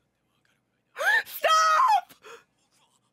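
A young woman gasps in surprise close to a microphone.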